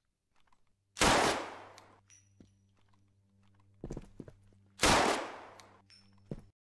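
Gunshots ring out loudly with a short echo.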